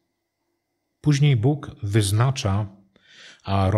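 A middle-aged man reads out calmly into a microphone.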